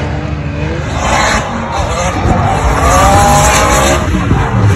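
Tyres screech on tarmac.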